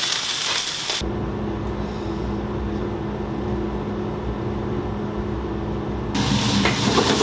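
An exhaust fan hums steadily.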